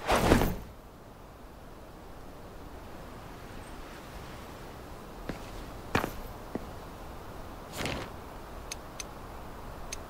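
Footsteps tap on roof tiles.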